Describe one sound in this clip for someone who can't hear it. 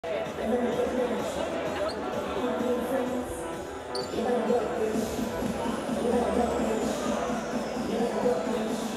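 A man talks casually close by in a large echoing hall.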